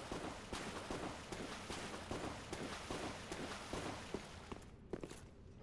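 Heavy armoured footsteps clank on a stone floor.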